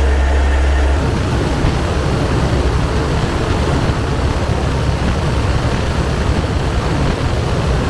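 Wind roars loudly past an open door of an aircraft in flight.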